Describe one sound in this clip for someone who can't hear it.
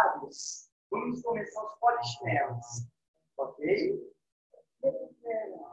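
A man speaks with animation through an online call microphone.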